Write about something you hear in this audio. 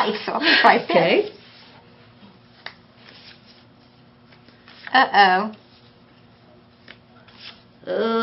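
Paper cards are laid down on a board with soft taps.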